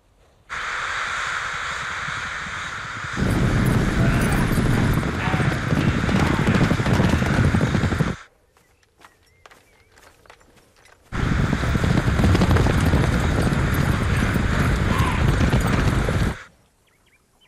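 A huge flock of birds flutters and chirps overhead.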